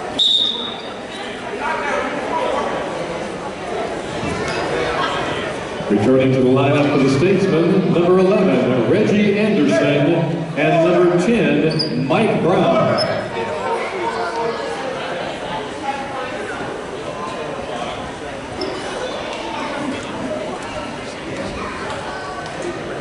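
A crowd chatters in an echoing gym.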